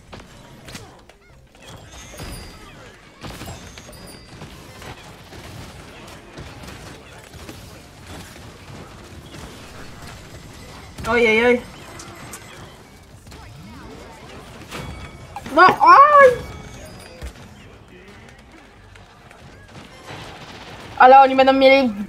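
Weapons fire in quick bursts, with popping and zapping effects.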